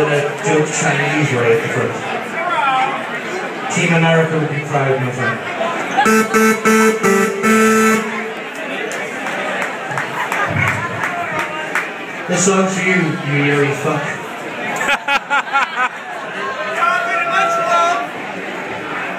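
A live band plays loud rock music through amplifiers.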